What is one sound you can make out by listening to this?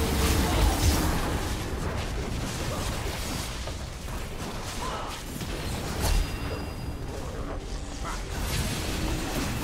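Game spell effects and hits clash and crackle in a busy fight.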